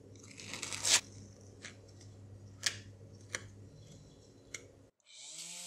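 A putty knife scrapes across a surface.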